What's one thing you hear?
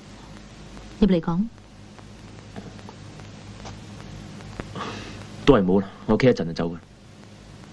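A young woman answers curtly in a low voice, close by.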